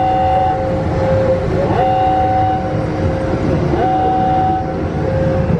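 Water sprays hard against a car's windshield.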